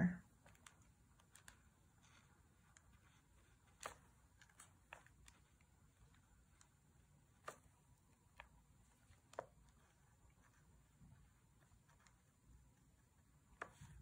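A paintbrush dabs and taps lightly on paper.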